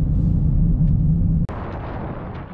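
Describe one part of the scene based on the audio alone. A car engine hums from inside a moving car.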